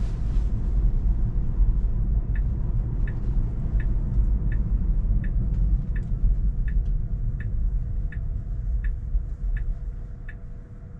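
A car's tyres rumble steadily on the road from inside the cabin.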